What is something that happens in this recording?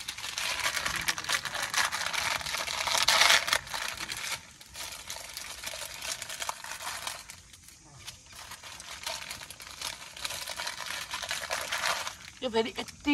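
Plastic snack wrappers crinkle and rustle close by.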